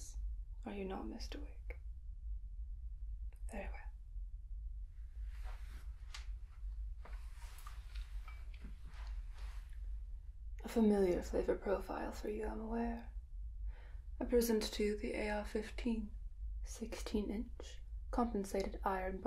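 A young woman speaks softly and calmly close to a microphone.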